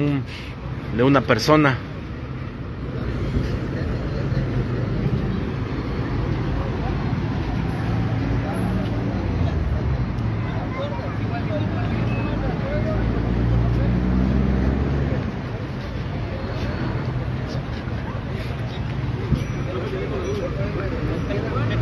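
Men talk nearby in low voices outdoors.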